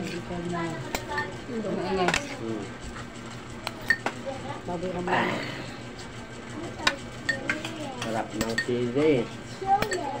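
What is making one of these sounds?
A metal spoon clinks against a bowl.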